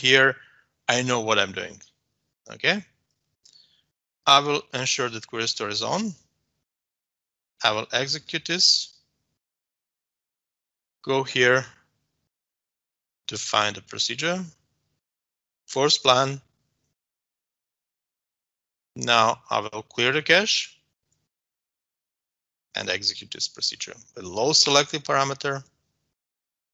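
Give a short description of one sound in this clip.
A man talks calmly and closely into a microphone, in short bursts with pauses.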